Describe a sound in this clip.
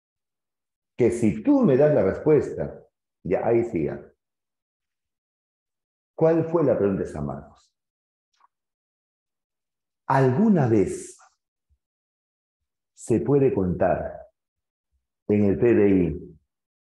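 A middle-aged man speaks with animation in short bursts, close to a microphone, with pauses between.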